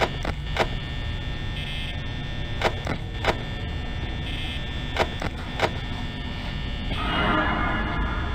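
A desk fan whirs steadily.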